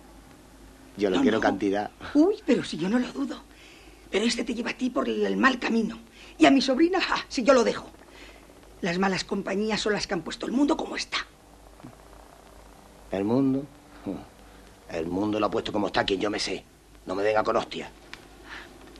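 A middle-aged man talks quietly nearby.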